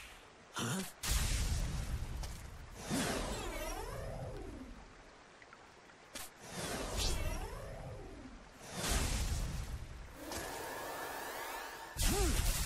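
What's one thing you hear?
Heavy blows thud in a fight.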